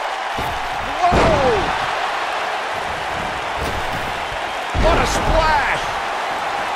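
A body slams onto a wrestling mat with a heavy thud.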